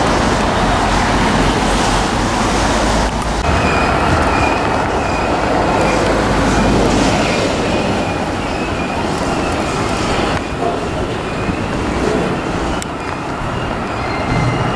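A long freight train rumbles and clatters along the tracks close by.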